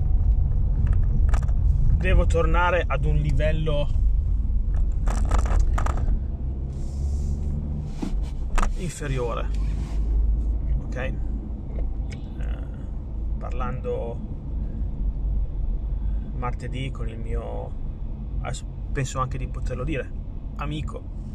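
A car engine rumbles low and steadily.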